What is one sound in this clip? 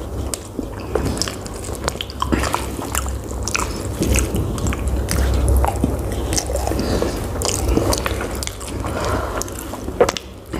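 A man chews food loudly and wetly close up.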